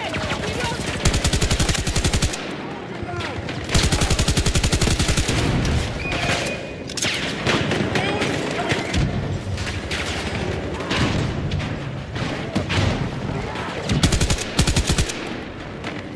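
A rifle fires rapid bursts up close.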